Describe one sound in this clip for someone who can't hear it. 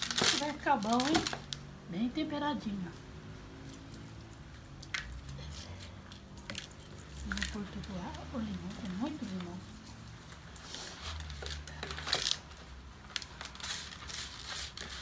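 Hands squelch and rub seasoning into raw meat in a plastic bowl.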